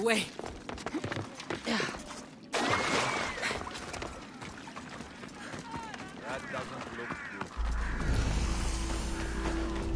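Footsteps run over dirt and gravel.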